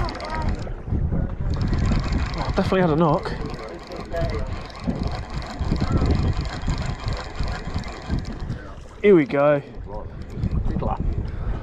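A fishing reel whirs and clicks as it is cranked.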